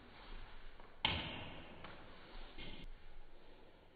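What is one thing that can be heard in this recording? A ping-pong ball clicks on a table and paddles.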